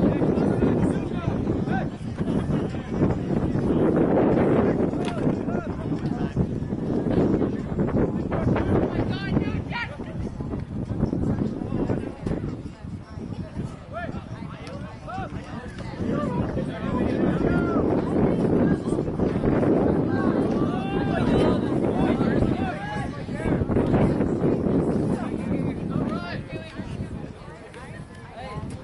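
Young men shout to one another across an open field.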